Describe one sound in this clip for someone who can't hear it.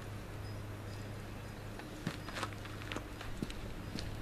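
A man's footsteps clomp on a wooden step.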